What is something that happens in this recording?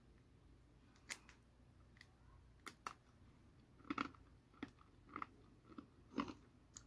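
A young woman crunches on a cookie.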